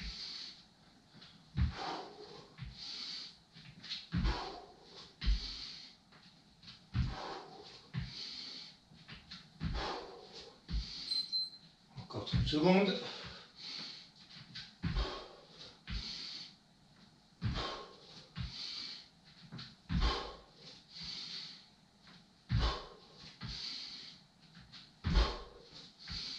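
A man breathes heavily in a steady rhythm, exhaling hard with each movement.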